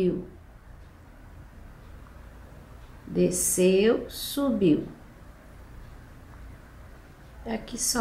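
A paintbrush softly brushes across cloth.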